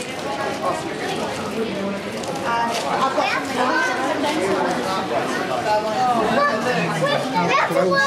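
A crowd of children and adults chatters nearby in an echoing hall.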